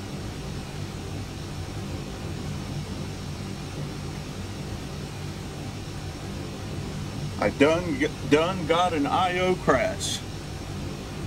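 Jet engines hum in a low, steady drone.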